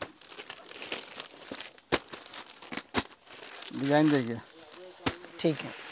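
Plastic packaging crinkles.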